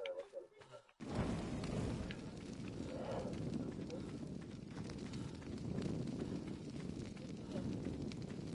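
A torch fire crackles and roars steadily.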